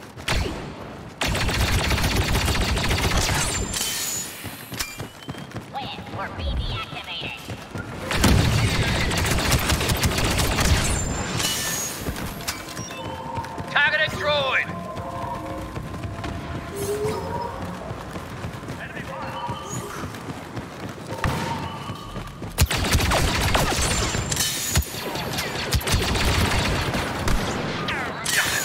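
Blaster guns fire in rapid bursts.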